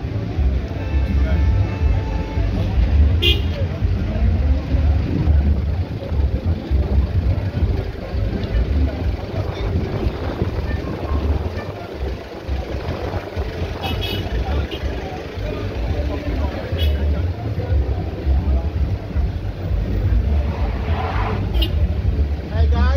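Car engines hum as traffic moves slowly along a road.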